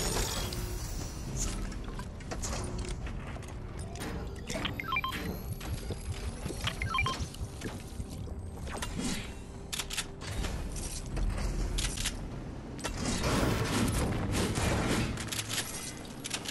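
Items are picked up with short clicks.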